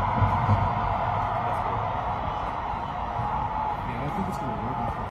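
A marching band plays brass music in a large open stadium.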